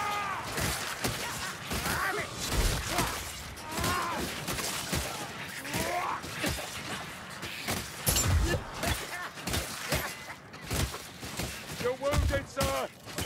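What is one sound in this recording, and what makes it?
Blades hack and slash into flesh with wet thuds.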